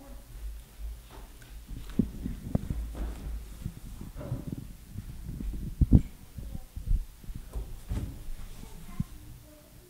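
Children's footsteps thud on a wooden floor.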